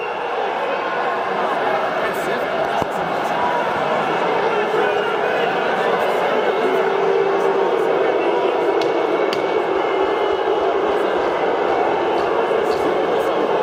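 A large crowd murmurs and chatters steadily in an echoing arena.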